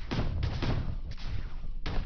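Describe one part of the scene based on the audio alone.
A laser cannon fires in short bursts.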